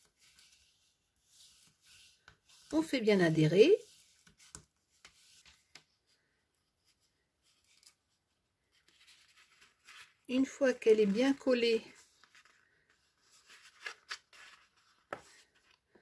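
Stiff paper rustles and creases under fingers.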